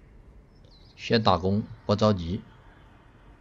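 A young man speaks briefly and with animation into a close microphone.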